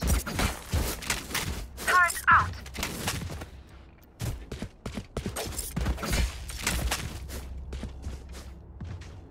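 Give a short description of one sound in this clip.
A gun is handled and turned over with metallic clicks and rattles.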